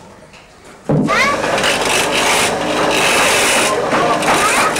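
A wood lathe whirs as it turns.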